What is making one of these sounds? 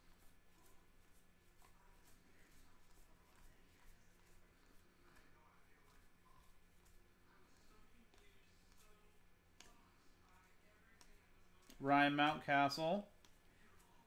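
Trading cards flick and rustle as they are shuffled by hand.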